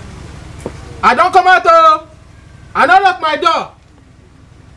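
A young man shouts with animation close by.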